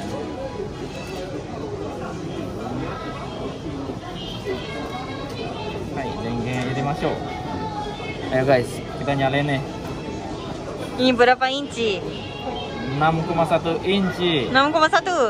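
A busy indoor crowd murmurs in the background.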